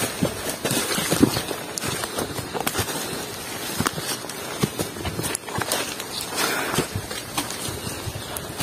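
Footsteps crunch on leaves and dirt along a forest trail.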